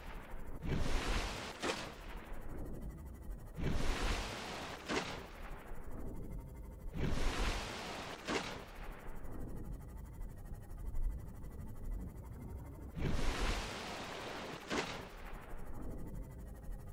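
Water splashes loudly as a small craft breaks through the surface and plunges back under.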